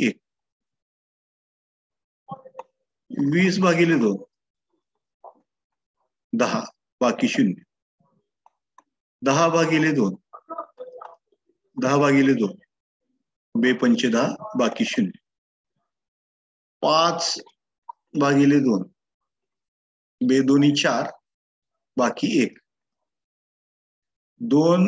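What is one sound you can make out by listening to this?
A man speaks calmly into a microphone, explaining step by step with short pauses.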